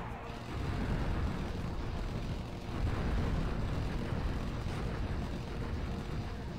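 Laser beams crackle and buzz steadily.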